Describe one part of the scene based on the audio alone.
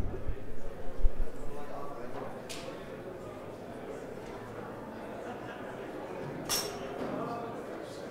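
A crowd of people murmurs and chats in a large echoing hall.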